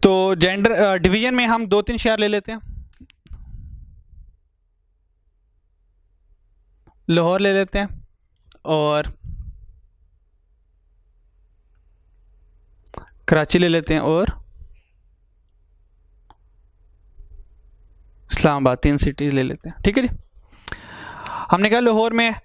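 A man speaks calmly through a microphone in short bursts with long pauses.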